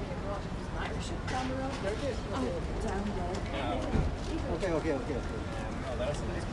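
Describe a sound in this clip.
A man and a woman talk nearby as they walk past.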